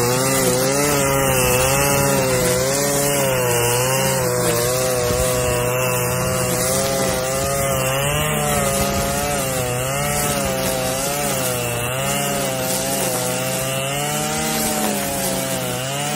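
Grass swishes as it is cut.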